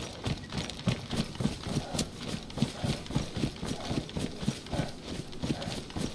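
Footsteps thud and rustle through tall grass at a steady walking pace.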